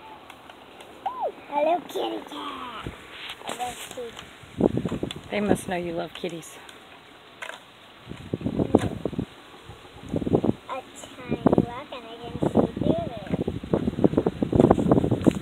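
A young girl talks and laughs close by.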